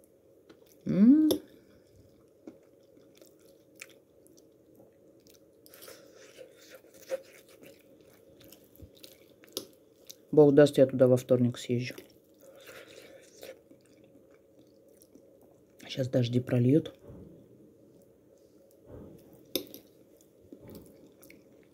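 A fork scrapes and clinks softly against a plate.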